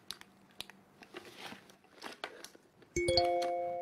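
Things rustle and clink inside a cloth bag.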